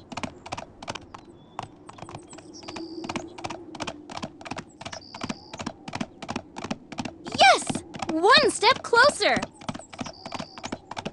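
Small hooves clop in a quick, steady trotting rhythm.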